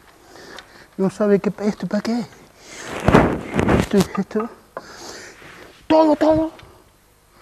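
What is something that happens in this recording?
A bearded man speaks calmly, close by.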